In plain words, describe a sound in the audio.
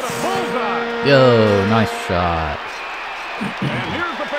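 A video game crowd cheers after a goal.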